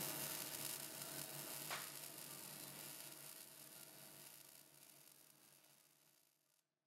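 A welding arc hisses and crackles faintly, then fades away.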